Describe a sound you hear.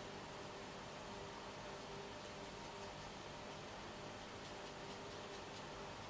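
A paintbrush dabs and strokes softly on paper.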